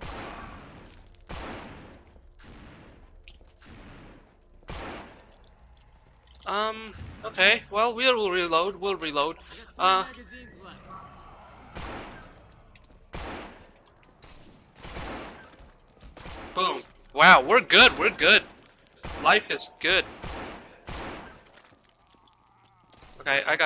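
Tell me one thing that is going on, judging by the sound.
Gunshots ring out one after another, each with a short echo.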